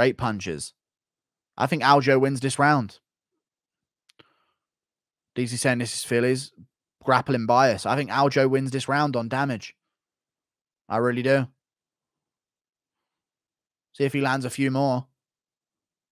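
A man speaks calmly into a close microphone, in short bursts with pauses.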